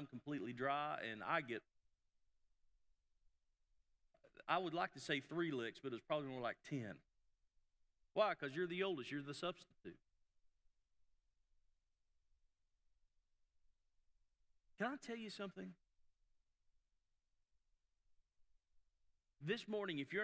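A middle-aged man speaks calmly in short phrases with long pauses.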